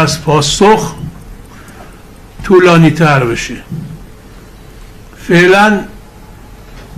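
A middle-aged man speaks calmly into microphones, with pauses.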